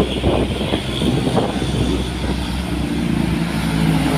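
A motorbike buzzes past.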